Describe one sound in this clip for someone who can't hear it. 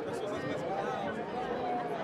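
A man nearby laughs.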